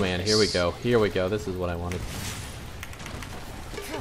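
A chime rings as a level is gained.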